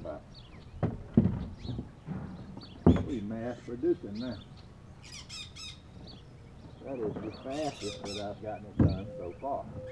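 Gear knocks against a boat now and then.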